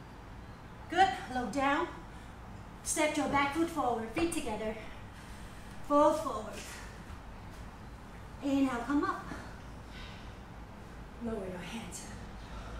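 A woman speaks calmly, giving instructions in short phrases.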